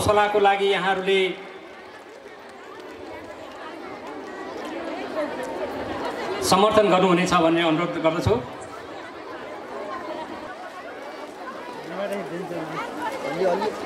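A man speaks over a loudspeaker at an outdoor event.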